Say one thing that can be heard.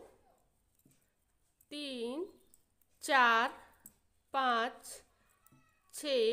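Knitting needles click softly.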